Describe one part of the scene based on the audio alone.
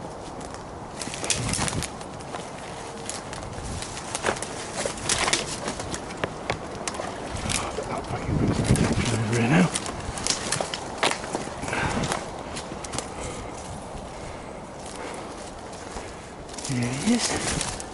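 Branches scrape and rustle against a coat.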